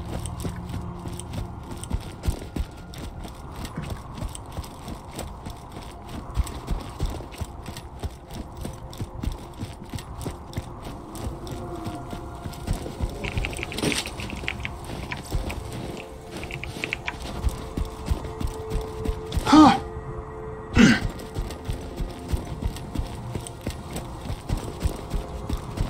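Footsteps crunch rhythmically on snow.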